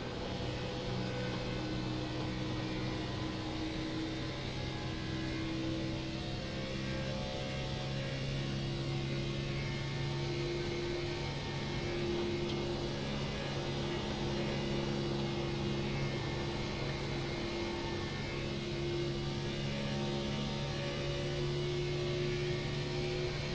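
A race car engine drones steadily at high speed.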